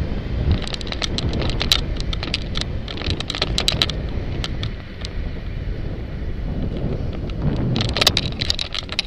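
Wind rumbles steadily against a rider moving along a street.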